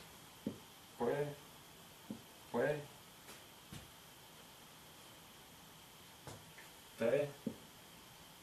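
A young man speaks in short, calm phrases close by.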